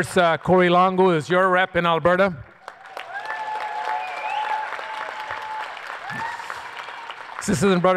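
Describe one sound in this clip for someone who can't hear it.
A man speaks steadily into a microphone in a large hall.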